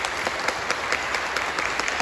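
A man claps his hands in a large echoing hall.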